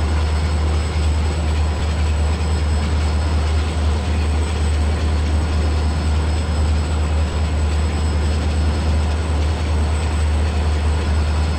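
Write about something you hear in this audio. A train's wheels rumble steadily over the rails.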